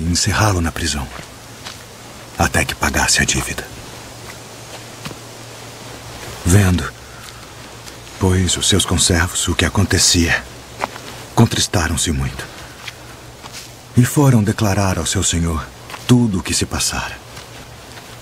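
A man speaks calmly and closely in bursts with pauses.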